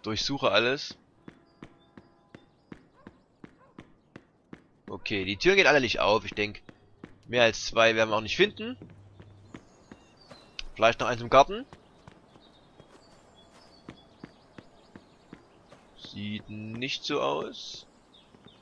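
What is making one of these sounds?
Quick footsteps run across a hard floor and then paving.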